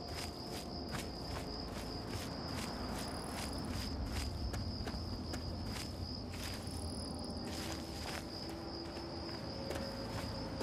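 Footsteps crunch steadily through dry grass.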